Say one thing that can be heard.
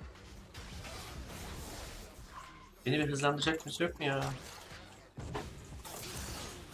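Game sound effects clash and whoosh in the background.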